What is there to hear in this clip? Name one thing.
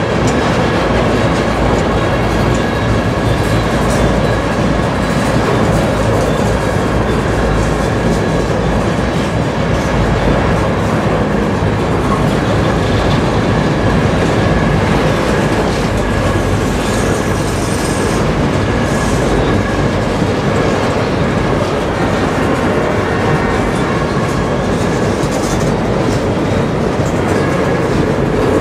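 Freight cars rumble and clatter past on the rails, close by.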